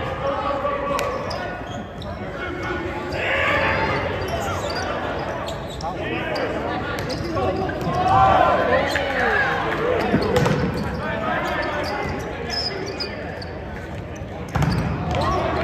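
A volleyball is struck hard during a rally in a large echoing gym.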